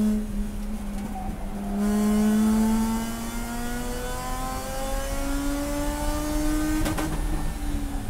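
A racing car engine roars loudly from inside the cabin, its pitch climbing steadily as it accelerates.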